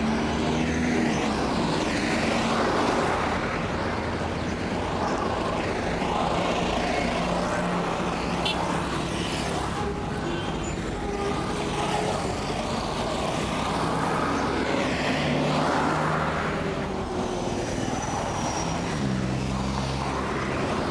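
Engines hum steadily as vehicles drive by.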